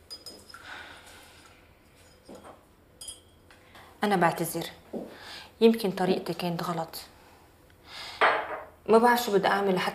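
A woman sets cups down on a counter with light clinks.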